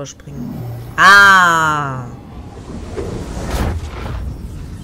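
A magical energy burst whooshes loudly and rumbles.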